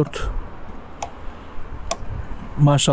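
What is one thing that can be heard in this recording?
A fuel cap clicks open.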